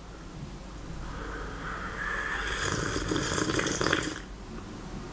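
A young man slurps a hot drink loudly.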